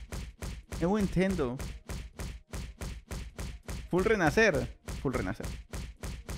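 Quick punching thumps repeat in a steady rhythm.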